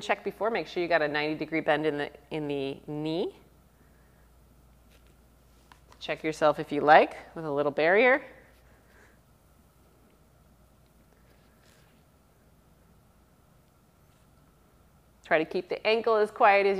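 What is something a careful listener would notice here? A woman speaks calmly and clearly into a close microphone, pausing between phrases.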